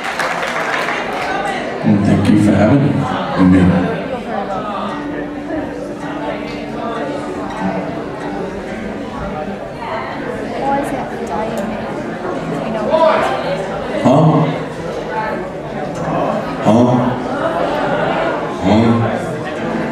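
A man strums an acoustic guitar through a loudspeaker.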